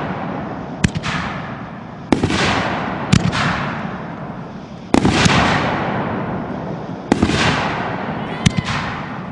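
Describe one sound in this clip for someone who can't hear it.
Fireworks burst with loud booming bangs, one after another.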